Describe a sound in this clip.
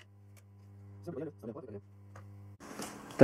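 A plastic connector clicks and rattles on a circuit board.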